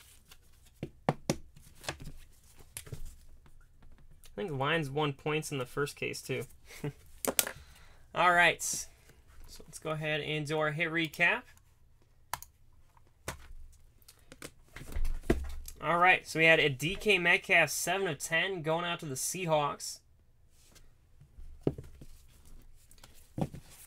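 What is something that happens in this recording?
Hard plastic card cases tap and click as they are handled.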